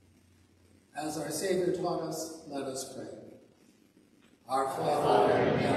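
A choir sings in a large echoing hall.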